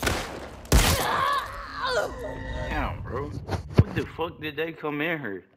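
A young woman groans and gasps in pain.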